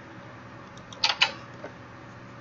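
A wooden door creaks open and clatters shut.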